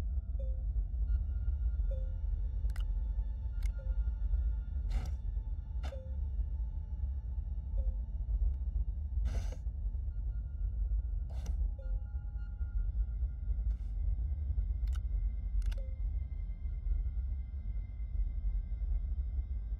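A low, steady machine hum drones throughout.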